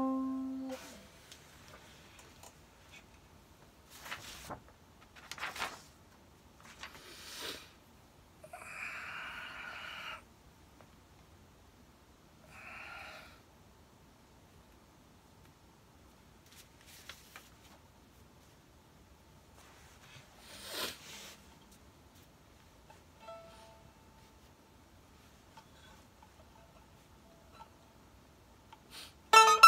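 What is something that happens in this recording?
A mandolin plays a few plucked notes, close by.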